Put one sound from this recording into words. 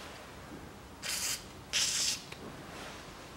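An aerosol can sprays in two short hissing bursts.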